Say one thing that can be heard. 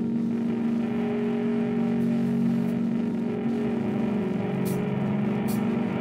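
A drummer plays a drum kit with crashing cymbals.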